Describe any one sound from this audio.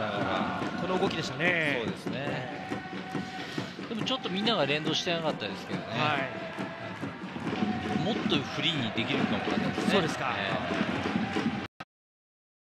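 A large stadium crowd cheers and roars in the distance.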